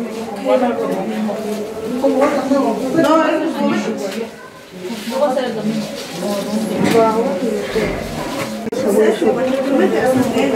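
Several women talk with one another nearby.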